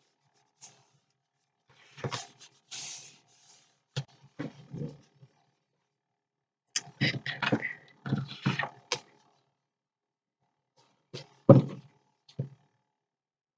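Stiff paper rustles and slides under hands.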